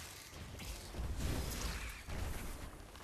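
A magical spell bursts with a rushing whoosh and a low rumble.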